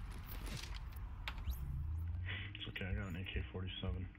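A soft electronic chime sounds as a menu opens.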